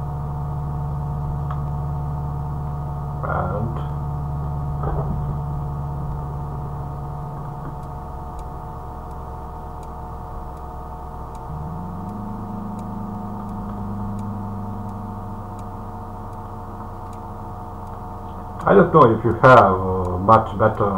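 A car engine hums steadily and shifts pitch as the car changes gear.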